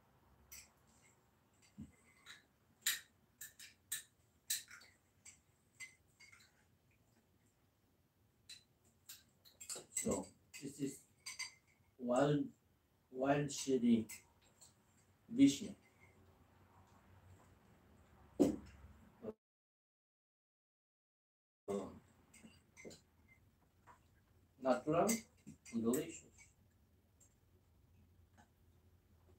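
Cutlery clinks against plates and cups.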